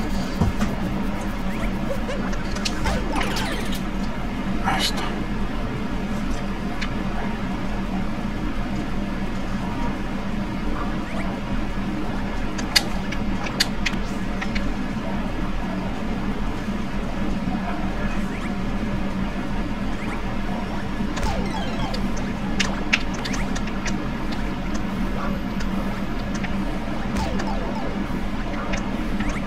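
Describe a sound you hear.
Video game sound effects chime and pop.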